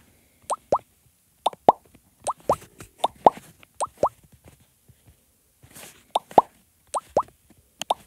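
Blocks drop into place in a game with short, bright rising pops, often two quick pops at a time.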